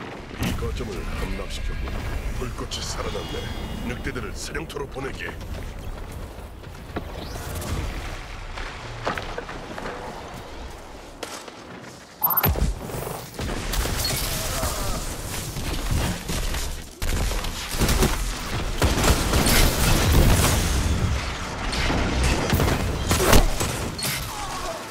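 Gunfire from a video game rattles in bursts.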